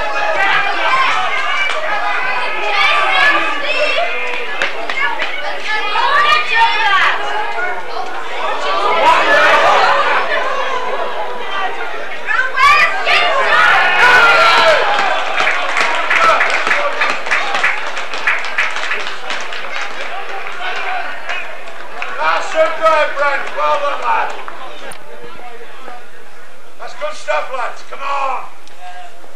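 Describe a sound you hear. Men shout and call out to each other on an open rugby field.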